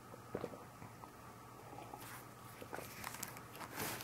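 A glass knocks softly as a hand picks it up.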